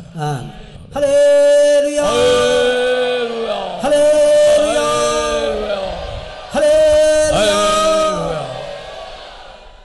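A man sings long, held notes into a microphone.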